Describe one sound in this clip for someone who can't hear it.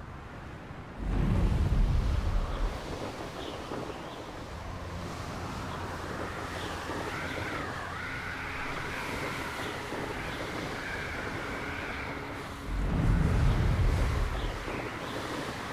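Wind rushes past in low gusts.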